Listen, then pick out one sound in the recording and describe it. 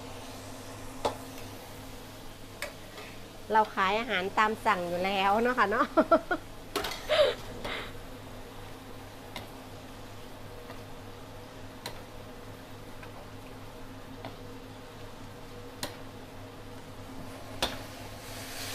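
A metal ladle clinks against a pan.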